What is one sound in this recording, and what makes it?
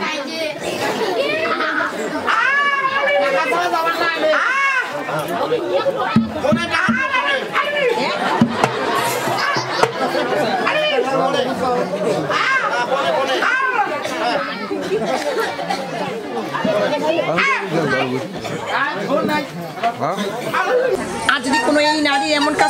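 A woman sings loudly through a loudspeaker.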